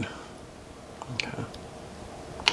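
Small plastic parts click softly as they are fitted together.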